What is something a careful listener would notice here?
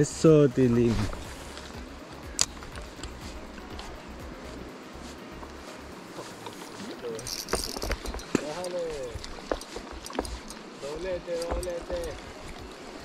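A shallow river flows and gurgles over stones.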